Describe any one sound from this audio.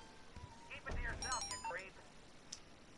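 A mobile phone chimes with a short run of electronic tones.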